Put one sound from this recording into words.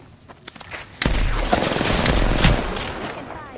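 Gunshots fire in quick bursts at close range.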